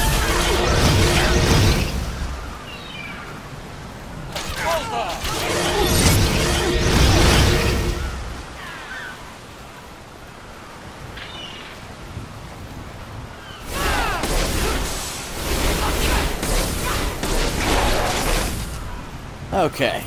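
Magic blasts and weapon clashes burst out in quick bursts.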